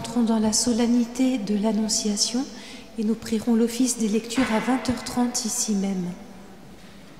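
Women sing together in a large echoing hall.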